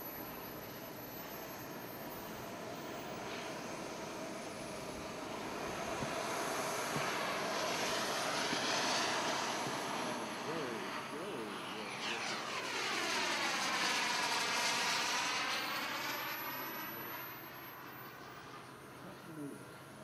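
A jet engine roars overhead, swelling loud as the plane passes and then fading.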